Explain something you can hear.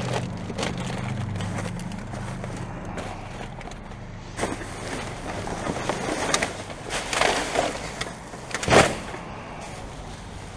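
Plastic bin bags rustle and crinkle up close.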